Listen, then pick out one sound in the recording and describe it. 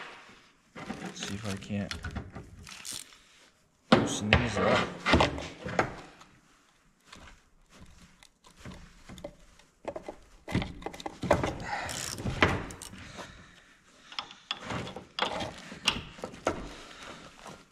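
Metal tools clink and scrape against metal parts.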